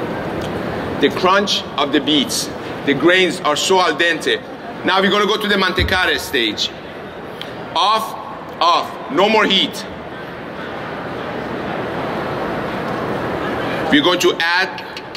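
A man speaks with animation through a microphone in a large, echoing hall.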